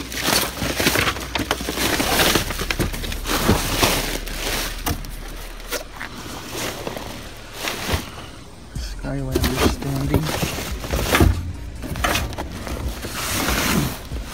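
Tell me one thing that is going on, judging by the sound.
Plastic wrapping crinkles and rustles as a hand handles it.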